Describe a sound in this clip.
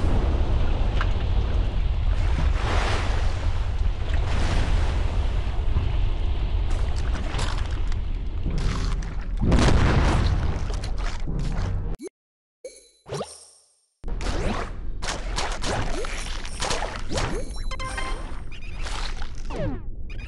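A deep underwater rumble drones on.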